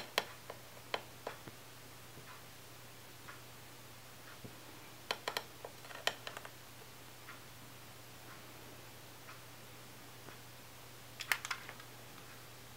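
A long lighter clicks sharply several times.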